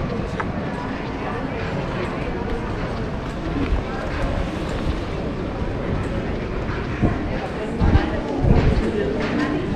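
Suitcase wheels rattle over paving stones.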